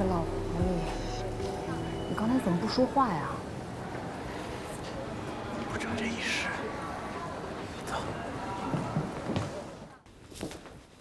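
A young woman speaks with attitude nearby.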